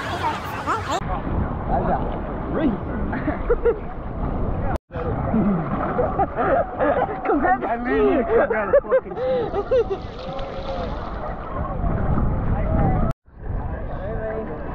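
Water splashes and laps close by.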